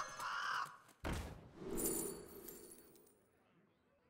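A card game plays a swooshing magical effect as a set of choices pops up.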